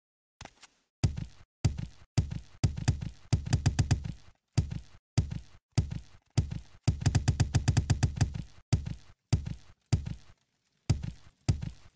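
Footsteps thud steadily on stone steps.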